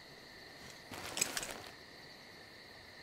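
A paper map rustles as it is unfolded.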